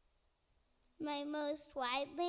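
A young girl sings loudly through a microphone.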